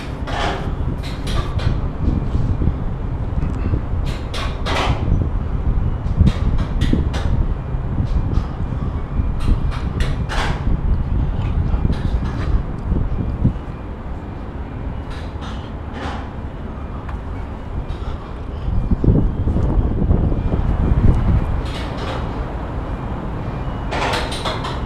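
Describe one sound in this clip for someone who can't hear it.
Wind buffets the microphone loudly outdoors.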